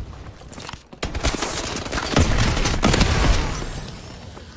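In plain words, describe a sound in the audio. Gunfire rattles in sharp bursts.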